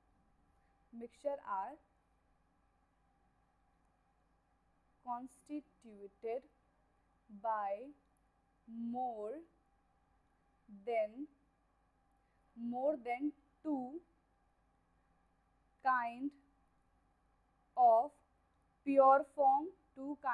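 A young woman speaks calmly into a nearby microphone, in short phrases with pauses.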